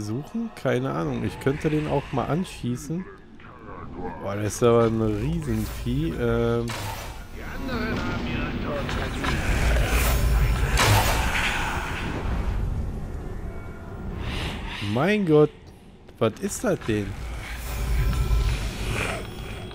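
A crackling energy beam hisses and hums.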